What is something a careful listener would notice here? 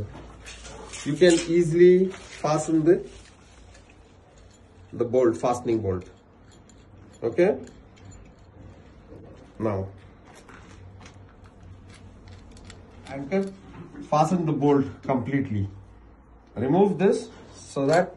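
A man speaks calmly nearby in short phrases.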